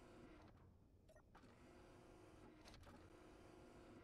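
A heavy sliding door opens with a mechanical whoosh.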